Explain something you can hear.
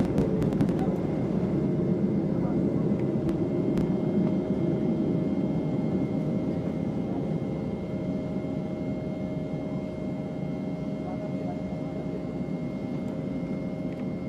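A jet engine roars loudly and steadily, heard from inside the cabin.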